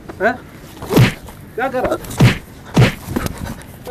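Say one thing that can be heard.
A shoe slaps against a man's back again and again.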